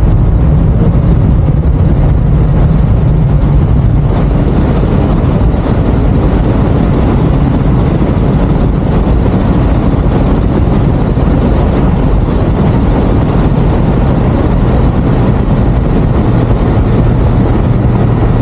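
A motorcycle engine hums steadily at speed.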